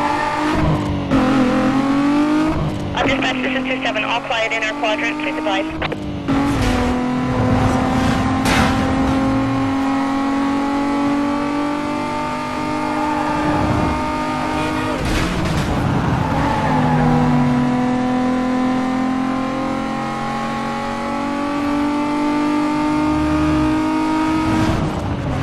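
A racing car engine roars at high revs, rising in pitch through each gear and dropping sharply at each gear change.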